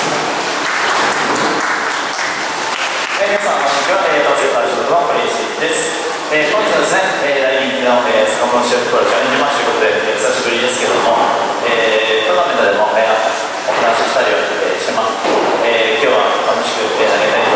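A young man speaks calmly into a microphone over a loudspeaker in a large echoing hall.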